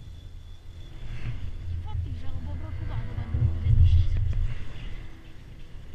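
A chairlift rumbles and clatters as it passes a lift tower.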